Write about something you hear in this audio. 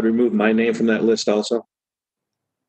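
A woman speaks through an online call.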